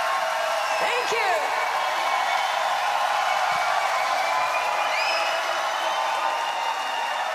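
A large crowd cheers and screams loudly in a big echoing arena.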